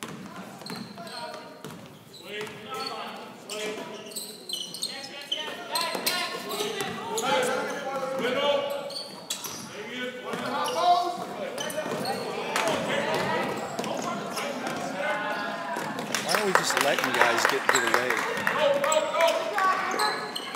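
Spectators talk and call out in a large echoing gym.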